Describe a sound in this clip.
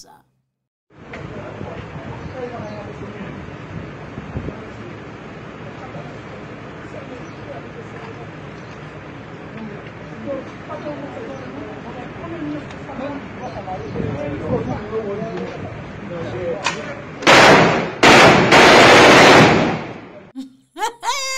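A crowd murmurs and calls out on a busy street.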